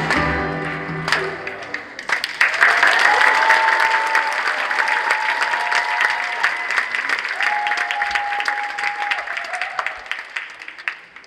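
A children's choir sings together in a large hall.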